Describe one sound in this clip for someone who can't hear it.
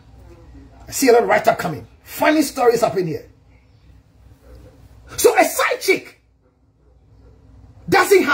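A man speaks loudly and with animation close to the microphone.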